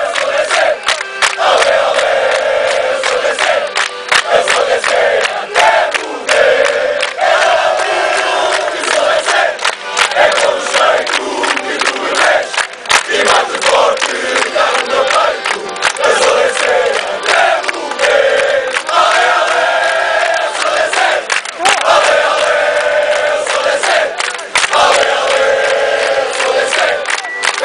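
People in the crowd clap their hands.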